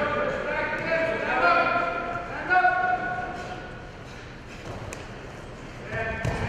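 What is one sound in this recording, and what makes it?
Spectators shout loudly in an echoing gym.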